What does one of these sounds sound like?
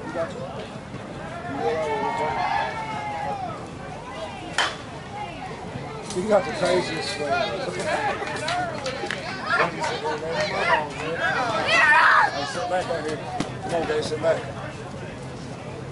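Men call out and chatter outdoors at a distance.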